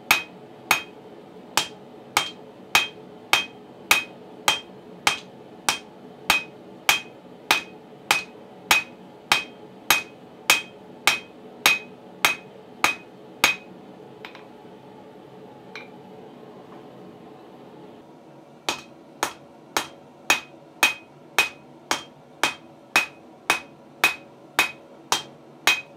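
A hammer strikes hot metal on an anvil in a steady, ringing rhythm.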